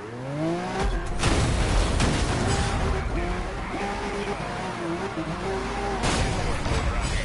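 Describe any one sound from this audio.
A car crashes with a loud metallic impact.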